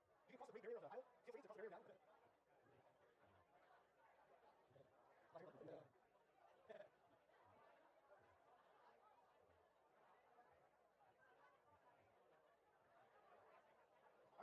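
A crowd of people chatter and mingle.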